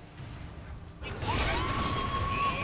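Fiery magic blasts crackle and roar.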